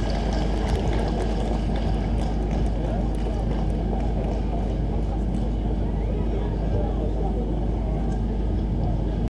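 Loud live band music plays through large outdoor speakers, heavy with booming bass.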